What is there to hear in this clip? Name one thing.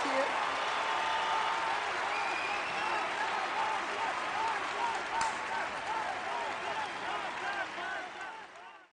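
A large crowd cheers and shouts loudly in a big echoing arena.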